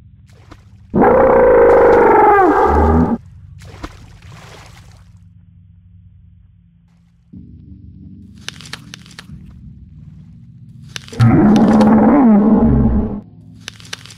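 A large beast roars loudly, twice.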